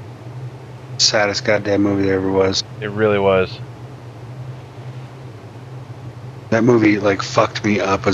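A large creature growls in short bursts.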